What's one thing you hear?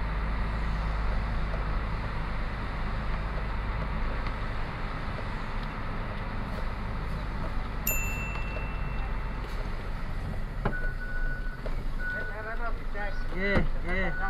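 A truck engine rumbles steadily as the truck rolls slowly.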